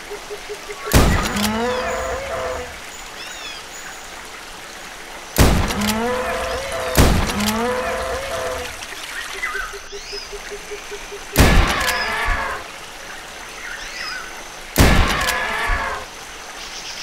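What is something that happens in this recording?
A shotgun fires loudly, echoing briefly.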